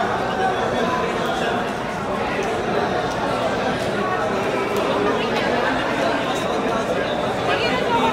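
Playing cards shuffle and riffle softly in hands.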